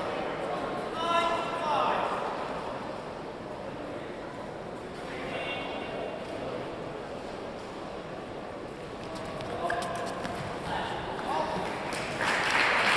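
Spectators shout out during the rally.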